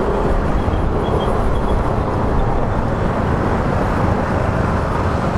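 City traffic rumbles all around.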